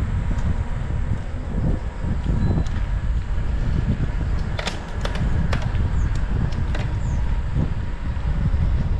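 Bicycle tyres roll on the road with light clicks.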